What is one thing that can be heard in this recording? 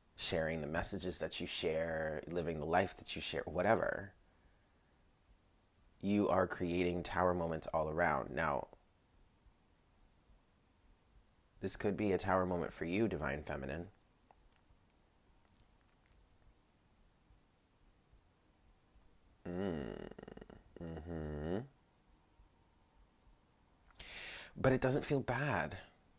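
A woman speaks calmly close by, in bursts with pauses.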